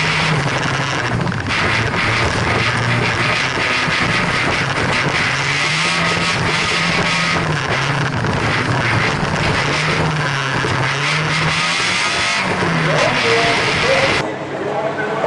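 Gravel and stones rattle against the underside of a car.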